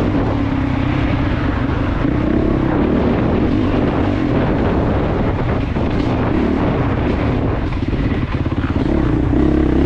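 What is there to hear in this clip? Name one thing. A dirt bike engine revs loudly up close, rising and falling.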